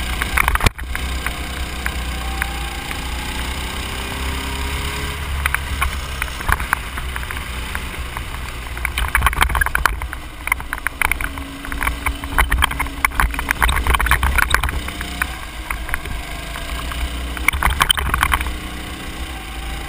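A go-kart engine drones steadily close by.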